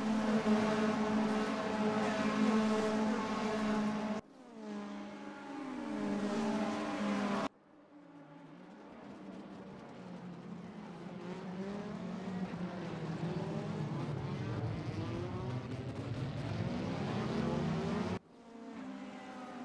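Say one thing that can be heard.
Engines rise and fall in pitch as cars shift gears and brake into a corner.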